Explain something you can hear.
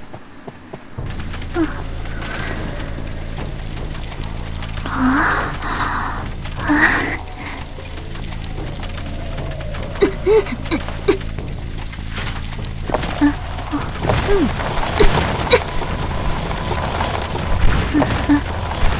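Wheelchair wheels roll and rumble steadily over the ground.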